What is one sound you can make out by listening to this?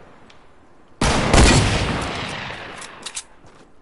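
A rifle shot booms and rings out.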